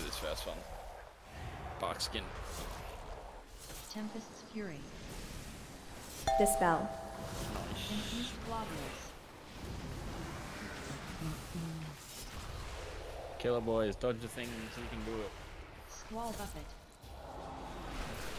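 Magic spell effects crackle and boom.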